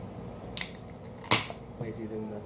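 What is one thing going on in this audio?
A can pops open with a sharp hiss.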